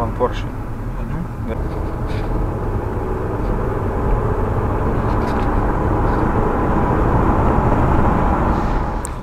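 Wind and road noise rise inside the car.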